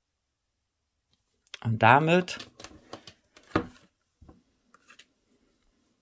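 Cards slide and tap on a tabletop.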